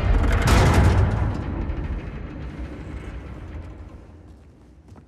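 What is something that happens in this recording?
A heavy mechanism rumbles loudly and fades away.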